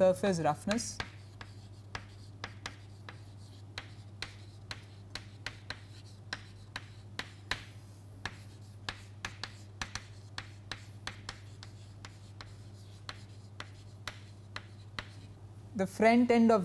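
Chalk taps and scratches on a chalkboard.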